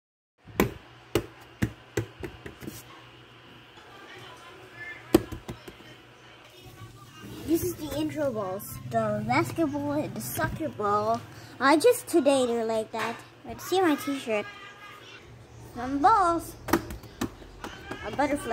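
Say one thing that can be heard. Rubber balls drop and thud against cardboard.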